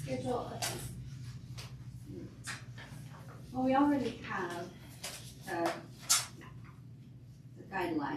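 Women talk quietly nearby.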